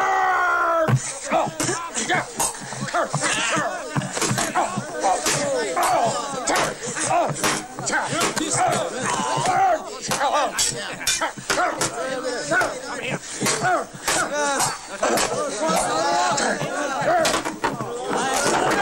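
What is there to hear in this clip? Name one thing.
Swords clash and bang against wooden shields.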